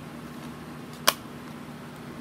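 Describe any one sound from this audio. A plastic disc case snaps shut with a sharp click.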